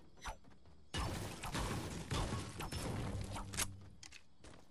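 A pickaxe strikes a wall with sharp thuds.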